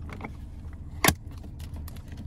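A plastic lid snaps shut with a sharp click.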